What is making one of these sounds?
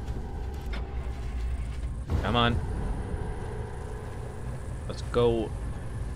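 A car engine starts and rumbles steadily.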